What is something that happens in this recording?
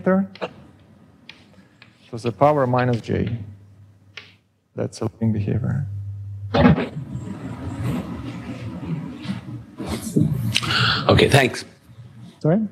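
A man lectures calmly and clearly in a room with a slight echo.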